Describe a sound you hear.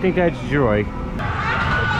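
A rider screams high above on a ride.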